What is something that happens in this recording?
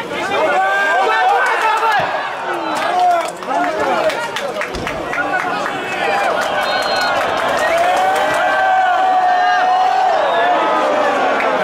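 A stadium crowd cheers and chants in the open air.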